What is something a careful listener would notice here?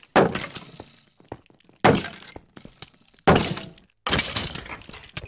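A sword strikes a skeleton with sharp clattering hits.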